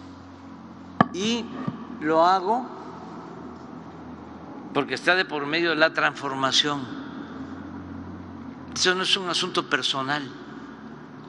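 An elderly man speaks into a microphone in a large echoing hall.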